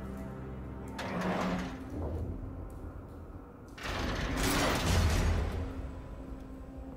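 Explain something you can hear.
A heavy metal door creaks and scrapes as it is forced open.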